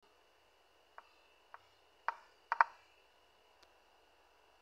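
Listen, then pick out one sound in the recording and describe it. Short digital clicks sound as chess pieces are moved.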